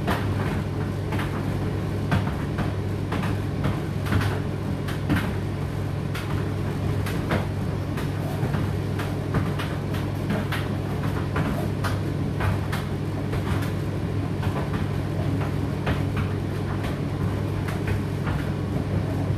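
A condenser tumble dryer runs with a steady motor hum.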